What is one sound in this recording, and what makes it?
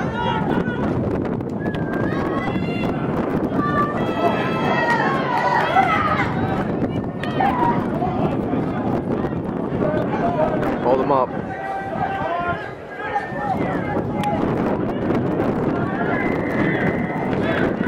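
Spectators cheer and call out from the sideline.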